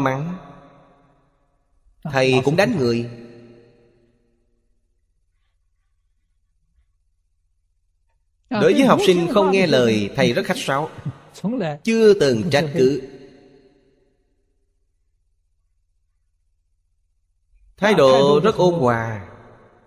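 An elderly man speaks calmly and warmly through a microphone, pausing often.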